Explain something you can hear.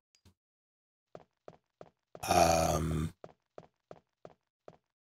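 Quick footsteps thud on a wooden floor.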